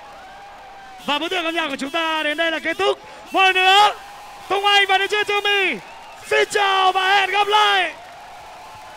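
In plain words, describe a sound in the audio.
A young man sings loudly through a microphone over loudspeakers.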